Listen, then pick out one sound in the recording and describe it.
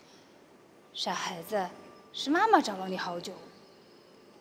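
A woman answers gently and close by.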